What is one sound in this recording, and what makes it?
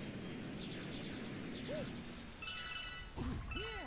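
Cartoonish game sound effects chime and sparkle in quick falling runs.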